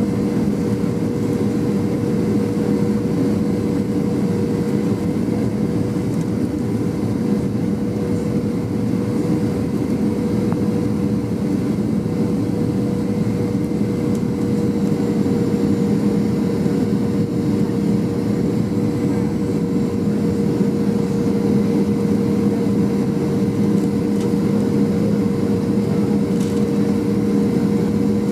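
A jet engine roars steadily with a low hum and a droning whine, heard from inside an aircraft cabin.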